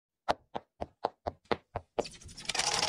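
Small footsteps tap quickly in an even rhythm.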